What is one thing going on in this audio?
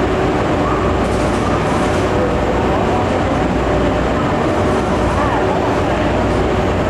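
An electric locomotive rolls slowly into a station with a low rumble.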